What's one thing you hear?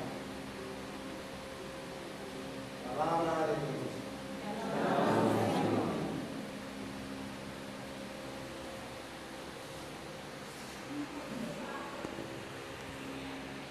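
A crowd murmurs quietly in an echoing hall.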